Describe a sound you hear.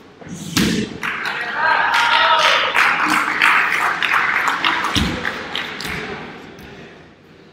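A crowd of men cheers and shouts with excitement.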